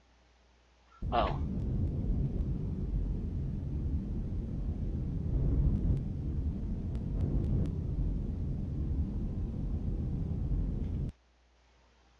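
A spaceship's engine rumbles low and steady.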